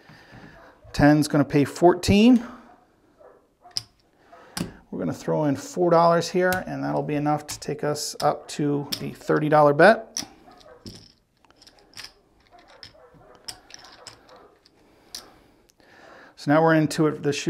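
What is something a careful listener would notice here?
Casino chips click and clack together as they are stacked and moved.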